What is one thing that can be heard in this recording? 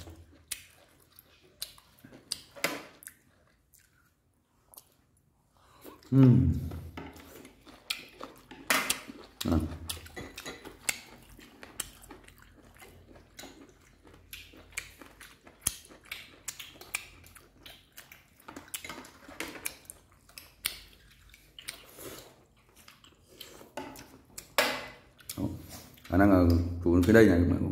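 Chopsticks click and tap against plates and bowls.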